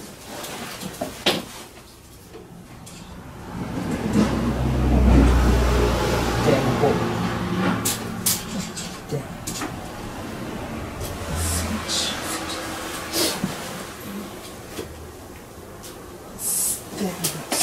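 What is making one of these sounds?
Light knocks and clicks sound against a metal cabinet door.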